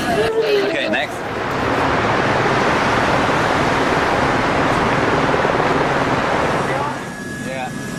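A helicopter's rotor roars overhead.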